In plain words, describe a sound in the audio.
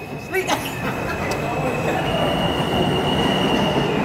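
A subway train pulls away from the platform with a rising rumble.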